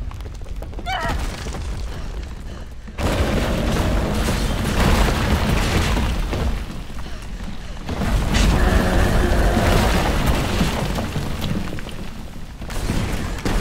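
Flames roar and crackle loudly close by.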